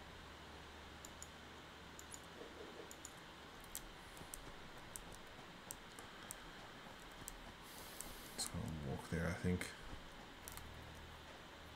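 Parts snap into place with short clicks.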